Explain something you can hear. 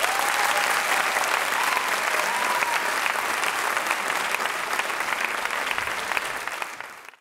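A large crowd applauds loudly in a big hall, then the clapping fades away.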